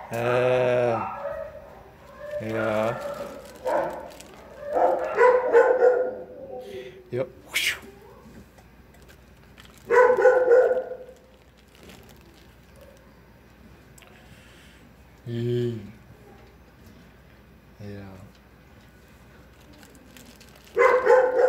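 A man talks softly to a dog, close by.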